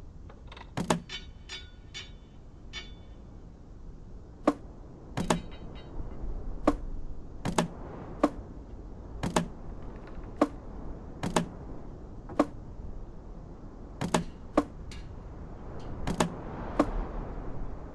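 Wooden planks knock as they are set down.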